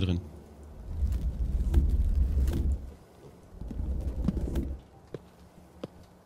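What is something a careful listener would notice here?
A pickaxe chips at stone.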